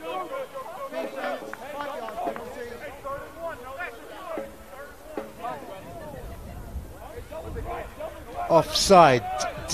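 A man announces calmly over a loudspeaker.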